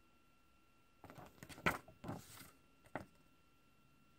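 Hands rustle and handle a paper game cover.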